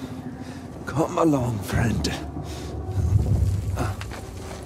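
A body scrapes and thuds on a stone floor.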